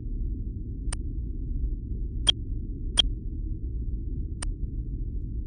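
Short, sharp game clicks sound as votes are cast.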